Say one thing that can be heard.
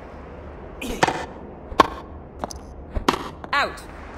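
A racket strikes a tennis ball with sharp pops.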